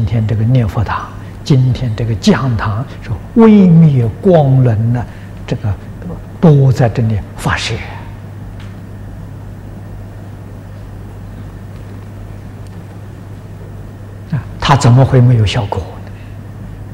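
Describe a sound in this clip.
An elderly man speaks calmly into a microphone, pausing at times.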